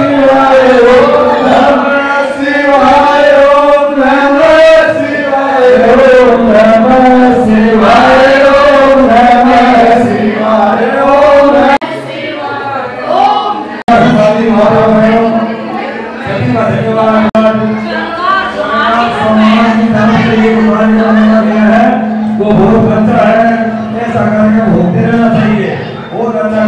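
A group of women sing a devotional song together.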